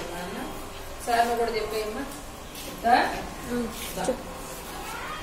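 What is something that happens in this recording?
A woman speaks to children.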